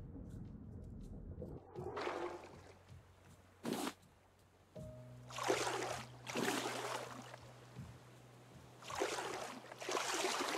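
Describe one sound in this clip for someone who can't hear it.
Ocean waves wash and lap gently all around.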